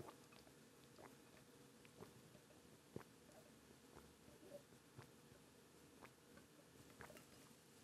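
A man gulps down a drink.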